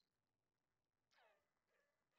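An electronic whoosh sweeps down.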